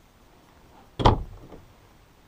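A wooden cabinet door knocks shut with a hollow thud.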